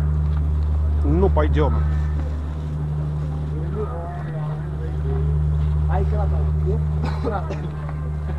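Men and women talk in passing nearby.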